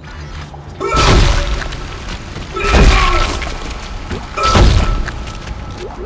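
Loud, heavy stomps crunch and thud.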